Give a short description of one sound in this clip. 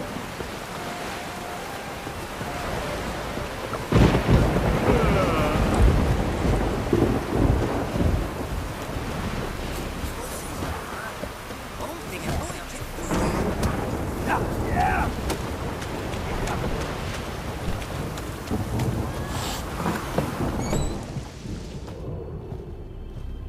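Footsteps run quickly over wet ground and wooden boards.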